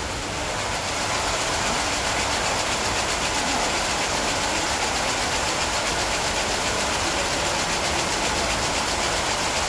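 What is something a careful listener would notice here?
Wire strands scrape and rattle against a spinning machine.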